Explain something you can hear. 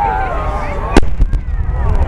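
A firework shell bursts with a loud boom.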